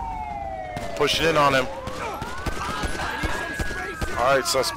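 Gunshots ring out close by.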